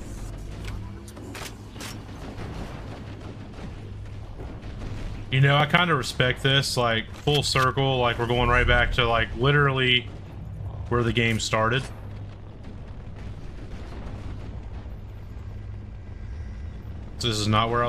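Gunfire and explosions crackle from a video game.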